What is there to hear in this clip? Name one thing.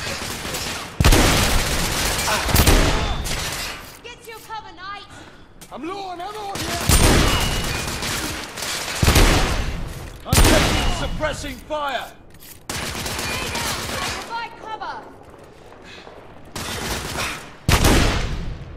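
A shotgun fires loudly several times, with echoing blasts.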